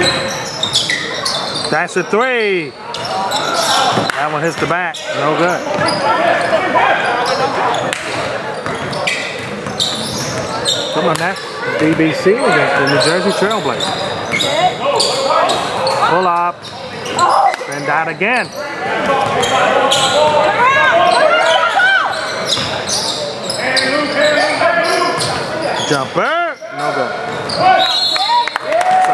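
Players shout to each other in a large echoing gym.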